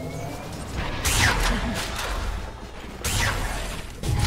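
Magic spells burst and whoosh in a fantasy battle.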